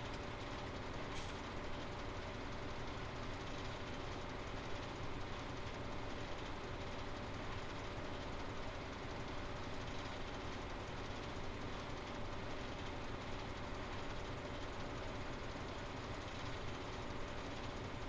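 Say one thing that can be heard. Harvesting machinery rattles and churns steadily.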